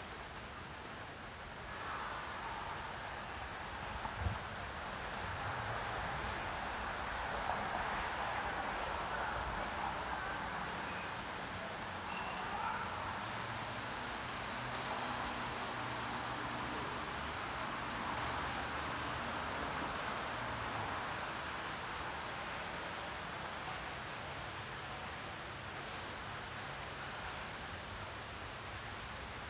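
Footsteps tread on paving stones outdoors.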